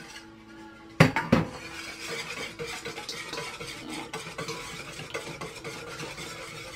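A spoon stirs and clinks against a metal cup.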